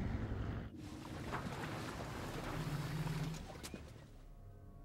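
A boat motors through water.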